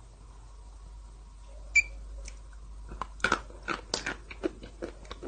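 A spoon scrapes and clinks against a glass.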